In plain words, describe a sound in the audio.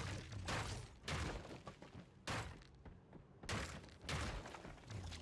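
A pickaxe strikes wood with sharp thuds.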